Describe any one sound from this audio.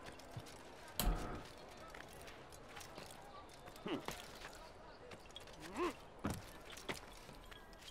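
Footsteps thud and scrape on a rooftop.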